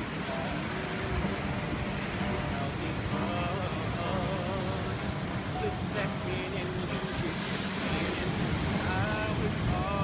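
Ocean waves rumble steadily close by.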